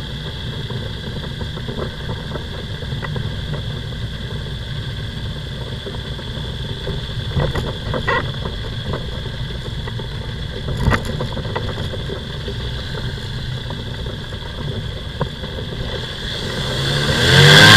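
A small aircraft engine drones steadily close by, rising toward the end.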